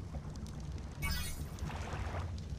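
A short bright chime rings out once.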